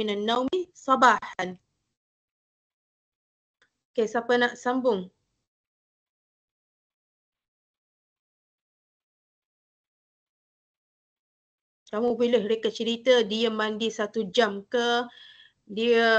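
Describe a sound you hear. A woman speaks calmly over an online call, in bursts with long pauses.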